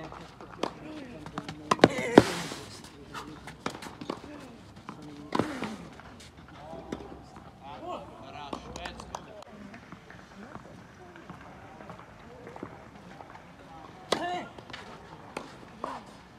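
A tennis ball is struck sharply by a racket, back and forth.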